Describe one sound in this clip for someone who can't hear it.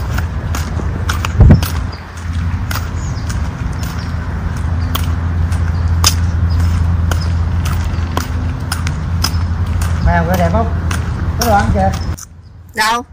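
Sandals slap on a paved path.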